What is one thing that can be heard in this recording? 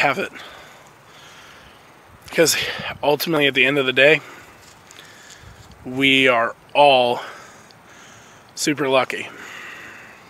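A man speaks close to a microphone in short, animated bursts.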